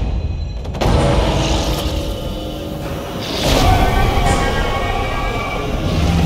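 A huge creature roars and groans as it collapses.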